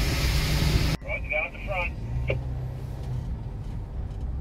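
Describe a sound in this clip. A large truck idles nearby with a low hum.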